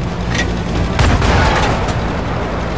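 A shell explodes in the distance.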